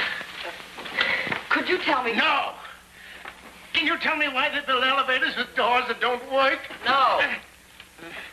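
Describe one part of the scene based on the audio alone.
A man cries out in strain, close by.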